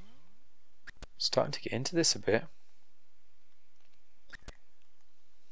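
Menu selections click sharply.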